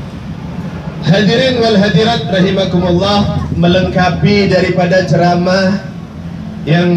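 A man speaks loudly through a microphone and loudspeakers.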